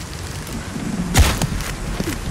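A bowstring snaps as an arrow is fired.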